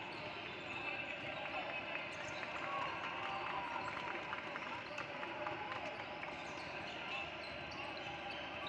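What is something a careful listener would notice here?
Basketballs bounce on a hardwood floor.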